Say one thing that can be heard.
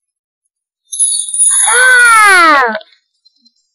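A lion roars.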